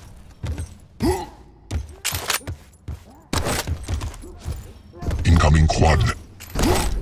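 A game gun fires shots.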